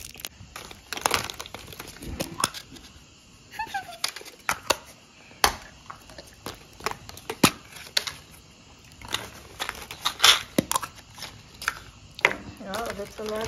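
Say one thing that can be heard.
Plastic eggs click and rattle as hands open them.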